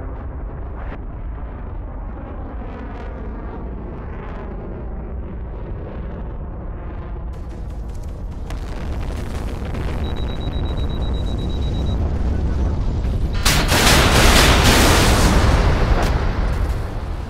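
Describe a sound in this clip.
A spacecraft's engines hum and roar steadily, growing louder.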